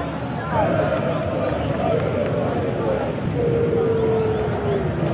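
Fans whistle shrilly from the stands.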